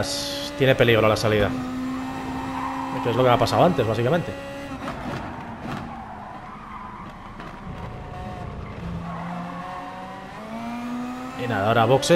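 A racing car engine roars and hums, its pitch rising and dropping through gear changes.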